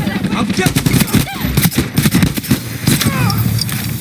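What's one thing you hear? A rifle fires several sharp shots in quick succession.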